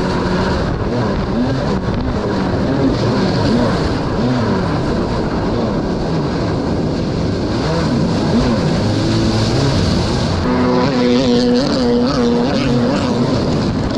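Water splashes and sprays against a jet ski's hull.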